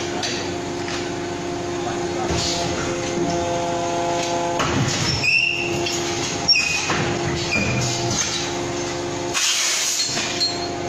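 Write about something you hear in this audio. A hydraulic press hums.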